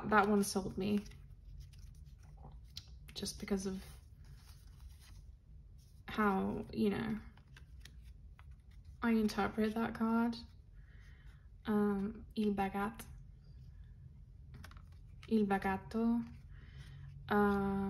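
Playing cards slide and tap softly against each other.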